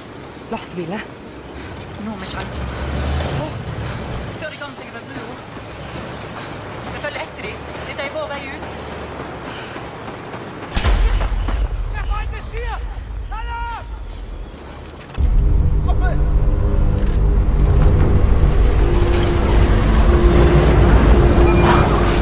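A heavy truck engine rumbles close by.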